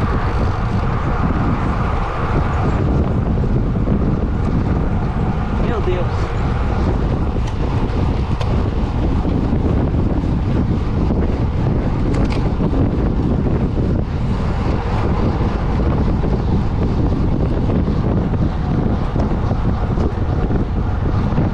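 Bicycle tyres hum on smooth road.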